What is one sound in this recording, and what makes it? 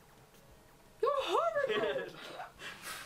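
A young woman squeals in a high voice.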